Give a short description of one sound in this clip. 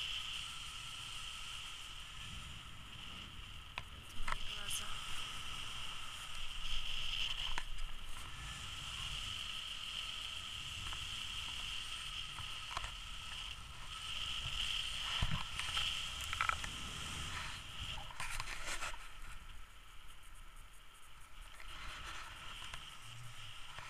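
Wind rushes and buffets steadily, outdoors high in the open air.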